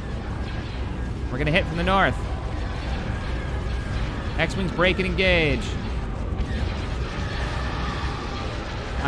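Spaceship engines rumble low and steady.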